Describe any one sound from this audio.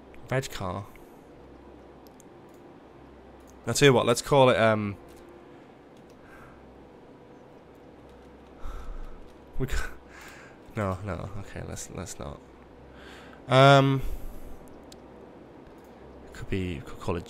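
A young man talks casually and with animation into a close microphone.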